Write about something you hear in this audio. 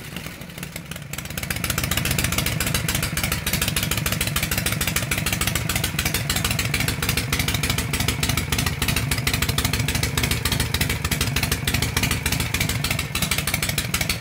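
A Harley-Davidson Shovelhead V-twin idles cold, its loud open drag pipes thumping in a loping beat.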